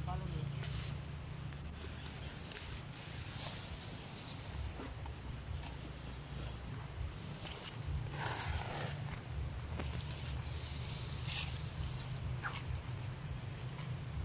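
A hand tool scrapes and chops through soil and weeds.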